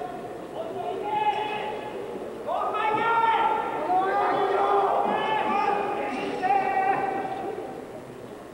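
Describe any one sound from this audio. A large crowd in an echoing arena chants and calls out in rhythm.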